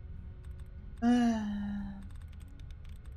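A computer terminal sounds a short electronic tone that drops in pitch.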